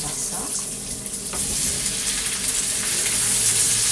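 Chopped potatoes tumble into a hot pan and hiss.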